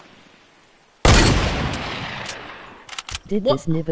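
A shotgun fires a single loud blast that rings out and fades.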